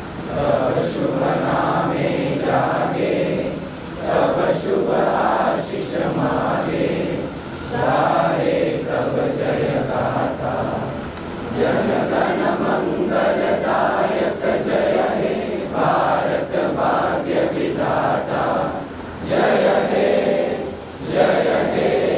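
A large crowd of men and women sings together slowly.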